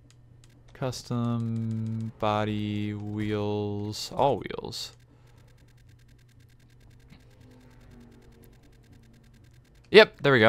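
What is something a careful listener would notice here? Menu selections click and beep.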